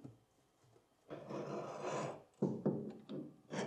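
A heavy metal block clunks down onto a metal base.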